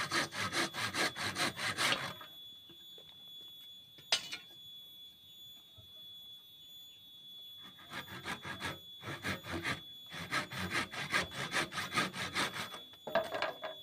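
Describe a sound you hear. A hand saw cuts through wood with quick, rasping strokes.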